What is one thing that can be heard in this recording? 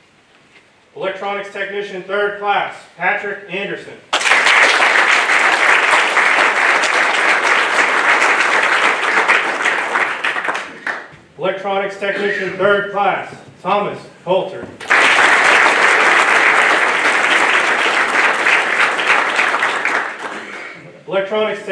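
A man speaks into a microphone, announcing.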